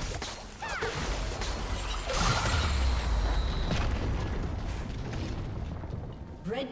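Game spell effects whoosh, zap and crackle in quick bursts.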